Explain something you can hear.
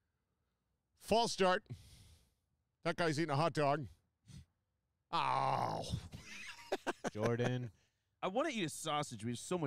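Men talk with animation into close microphones.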